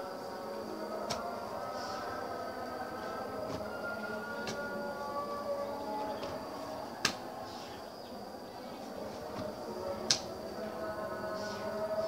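A shovel scrapes and thuds into loose soil.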